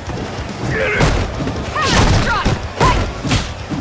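Heavy punches and kicks land with sharp thuds.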